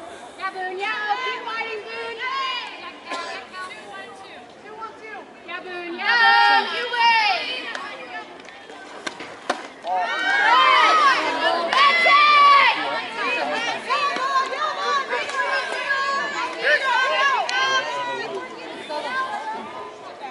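Young women cheer and chant with animation outdoors.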